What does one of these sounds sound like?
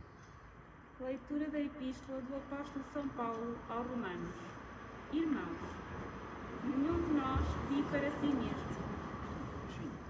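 A woman speaks calmly into a microphone, heard through a loudspeaker.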